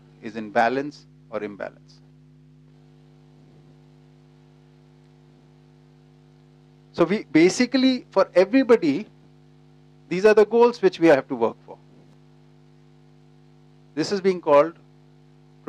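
A middle-aged man speaks calmly through a microphone, in short bursts with pauses.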